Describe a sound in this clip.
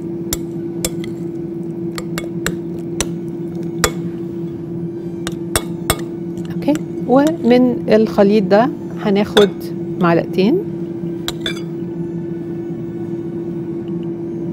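A metal fork clinks and scrapes against a glass bowl.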